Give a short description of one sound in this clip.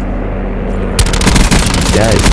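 A rifle fires a rapid burst of shots close by.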